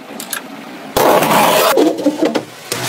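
A blade slits packing tape on a cardboard box.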